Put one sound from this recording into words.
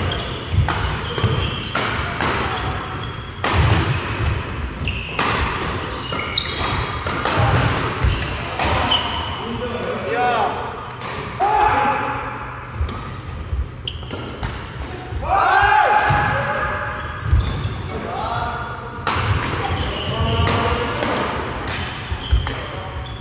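Shoes squeak sharply on the court floor.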